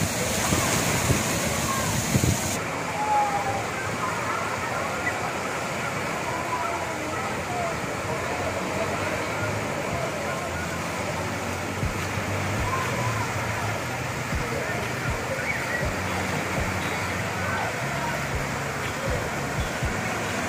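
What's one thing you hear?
Waves splash and wash through a pool.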